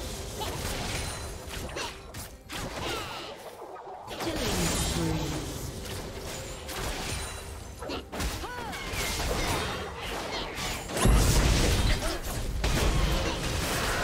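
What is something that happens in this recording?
Video game combat effects crackle and boom as spells and blows land.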